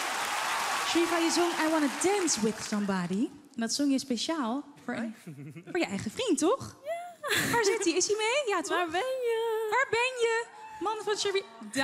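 A young woman speaks into a microphone over a loudspeaker with animation.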